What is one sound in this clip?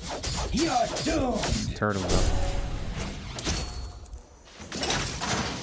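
Game sound effects of sword strikes and magic blasts clash.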